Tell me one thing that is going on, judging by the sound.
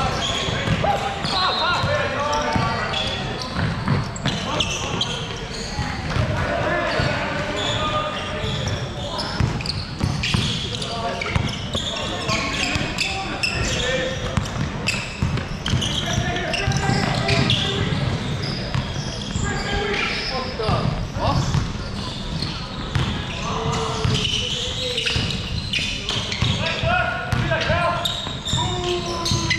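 Basketballs bounce on a wooden floor in a large echoing hall.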